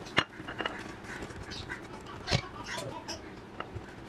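A spatula taps food into a glass dish.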